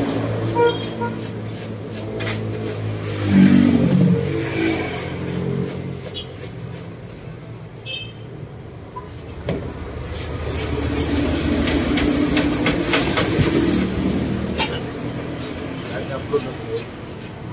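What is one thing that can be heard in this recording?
Rattan strips rustle and creak as they are woven.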